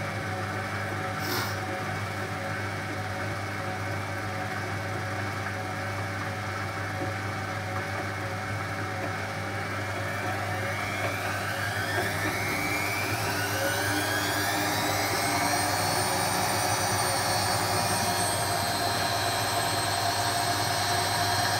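A washing machine drum hums and whirs steadily.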